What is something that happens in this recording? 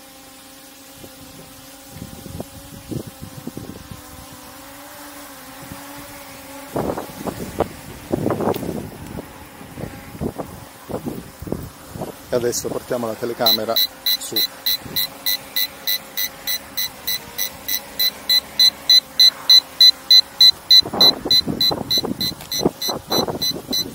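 A drone buzzes steadily overhead.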